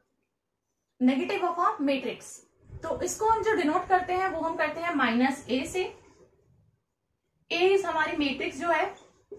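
A young woman speaks calmly and clearly, close by, as if explaining.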